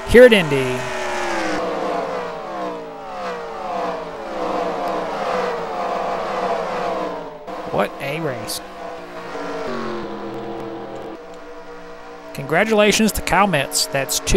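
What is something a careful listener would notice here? Racing car engines whine at high speed and drop in pitch as they pass by.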